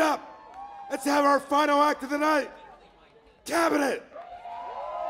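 A man speaks loudly into a microphone over loudspeakers in a large hall.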